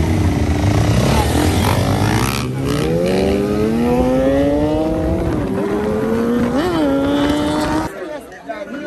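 Motorcycle engines rev loudly, rising and falling in pitch.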